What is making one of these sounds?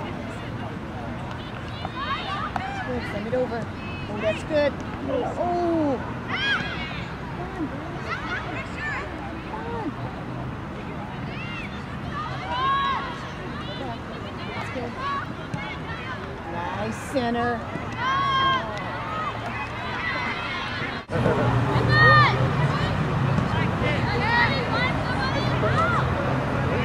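Spectators shout and cheer from the sideline outdoors.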